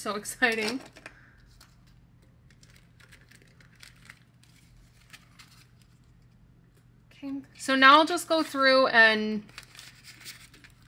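Paper banknotes rustle and crinkle as they are handled.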